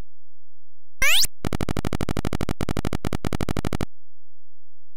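A rapid electronic melody of beeps plays.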